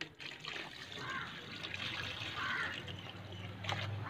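Water pours from a bucket and splashes into a shallow tub.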